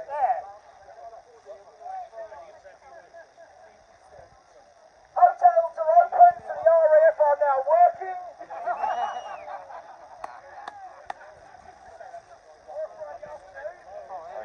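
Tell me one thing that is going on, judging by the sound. A crowd of men murmurs and talks in the background.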